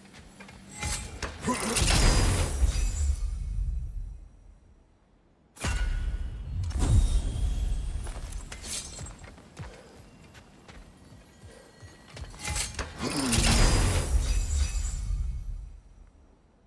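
A magical shimmering whoosh swells up and fades.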